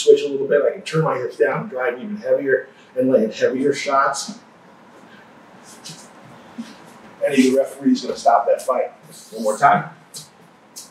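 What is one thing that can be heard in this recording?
A man explains calmly, speaking close to a microphone.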